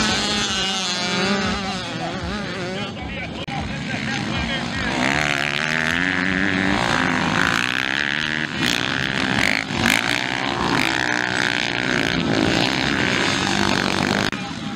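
Dirt bike engines rev loudly, rising and falling in pitch.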